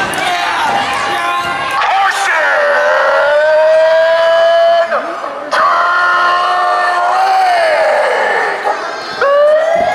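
A woman shouts loudly through a megaphone.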